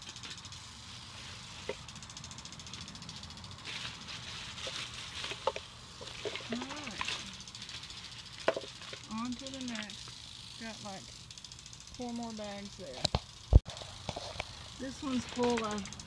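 Plastic bags rustle and crinkle as hands handle them.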